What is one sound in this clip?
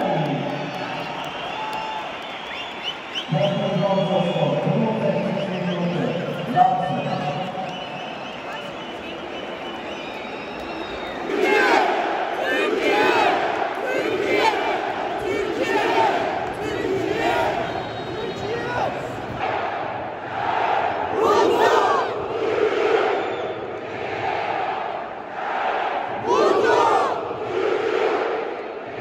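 A large stadium crowd chants loudly in rhythm, echoing around the stands.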